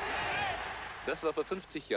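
A man speaks into a microphone outdoors.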